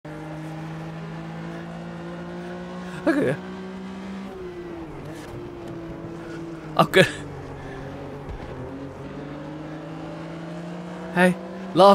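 A racing car engine drones steadily and shifts pitch.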